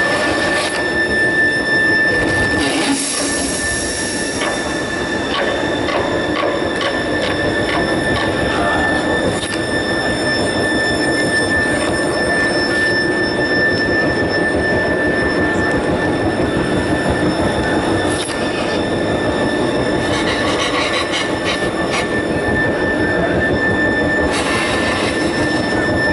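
Music plays loudly through a loudspeaker.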